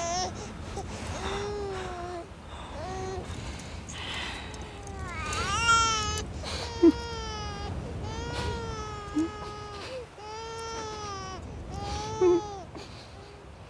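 A baby cries and coos close by.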